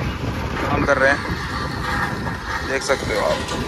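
A road roller engine rumbles nearby.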